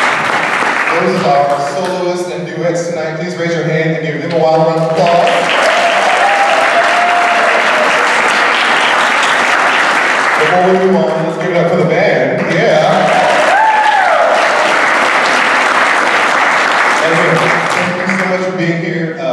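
A man sings loudly through a microphone in a large hall.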